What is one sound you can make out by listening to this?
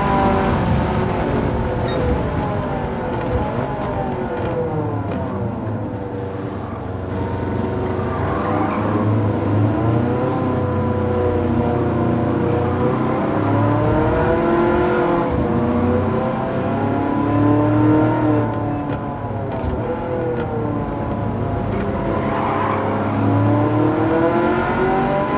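A racing car engine roars close by, its pitch rising and falling as it shifts gears.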